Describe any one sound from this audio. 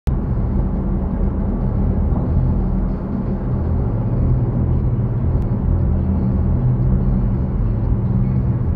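Tyres rumble on the road surface.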